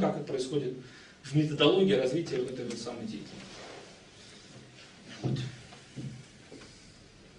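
A young man speaks calmly and clearly in a small room.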